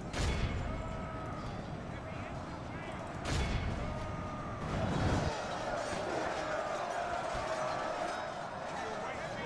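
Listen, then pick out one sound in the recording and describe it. A large body of soldiers tramps and clatters in march.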